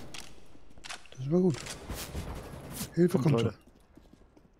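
A rifle magazine is swapped with metallic clicks.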